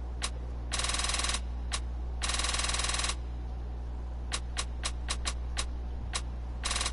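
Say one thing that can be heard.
Short electronic menu blips tick.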